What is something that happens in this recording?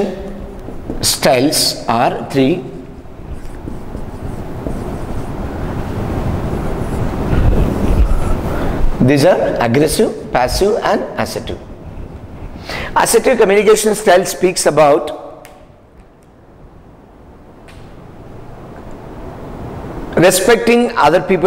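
A middle-aged man speaks through a clip-on microphone, explaining with animation.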